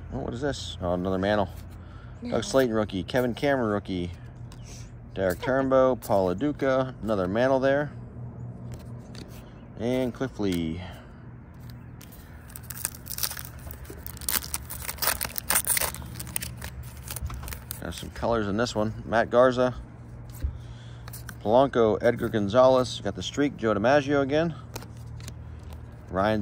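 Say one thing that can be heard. Trading cards slide and shuffle against each other.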